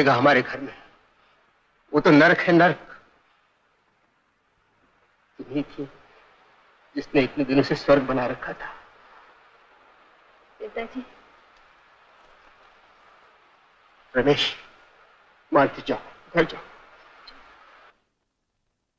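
A man speaks in a low, serious voice, close by.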